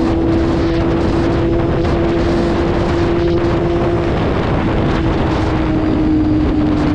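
A motorcycle engine hums steadily at speed.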